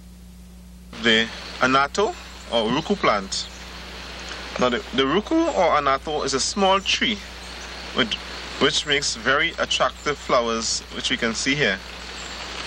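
An adult speaks calmly close by.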